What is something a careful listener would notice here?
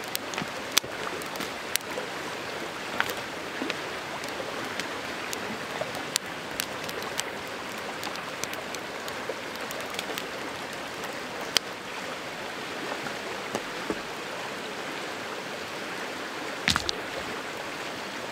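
A campfire crackles and pops close by.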